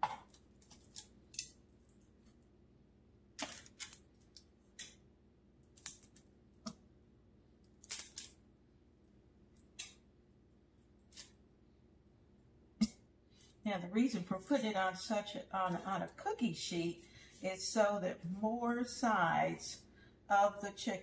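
Metal tongs click and tap against a baking tray.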